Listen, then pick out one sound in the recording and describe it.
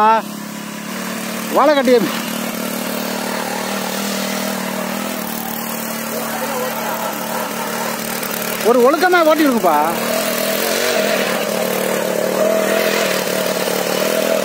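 A small motor tiller engine hums steadily outdoors.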